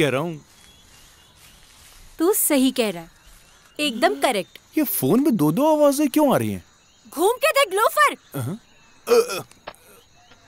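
A young man talks loudly and with animation on a phone.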